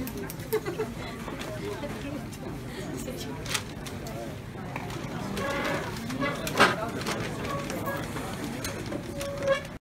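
A crowd of people chatters in a large room.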